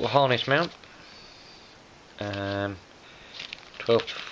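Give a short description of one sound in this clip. A plastic bag crinkles softly in a hand.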